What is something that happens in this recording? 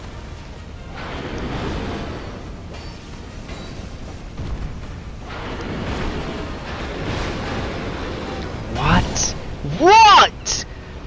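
Heavy blows crash and rumble as a giant swings a huge weapon.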